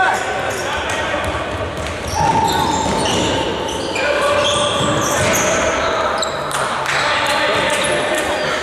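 A ball thuds as players kick it in an echoing hall.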